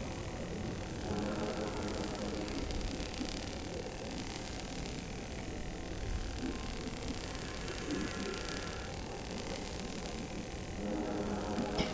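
A laser cutter buzzes and crackles steadily.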